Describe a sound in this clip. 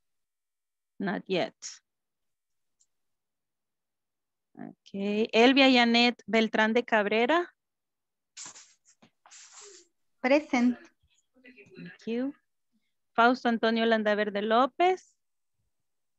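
A woman speaks with animation over an online call, in bursts with pauses.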